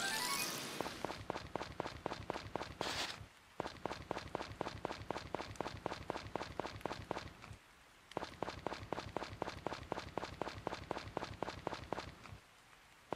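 Quick footsteps patter along a dirt path.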